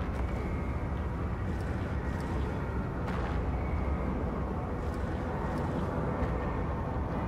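Heavy footsteps thud slowly on a stone floor.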